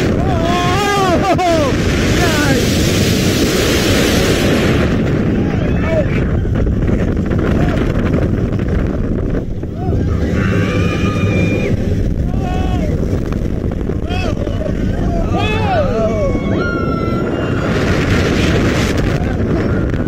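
Riders scream and shriek with excitement.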